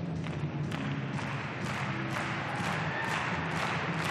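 A gymnast lands with a thump on a mat.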